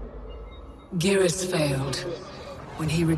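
A woman speaks calmly and gravely through a loudspeaker.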